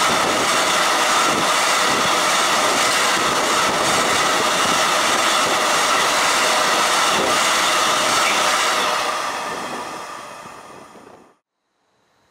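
A freight train rumbles and clatters loudly past close by, then fades.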